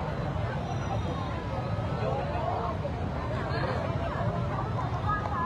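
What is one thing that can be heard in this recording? A large crowd chatters outdoors, with many voices overlapping.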